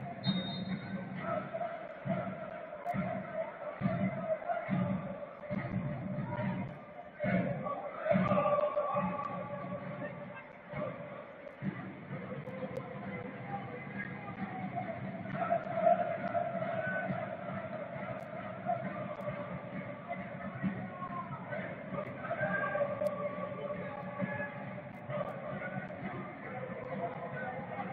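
A large crowd chants and sings in an open stadium.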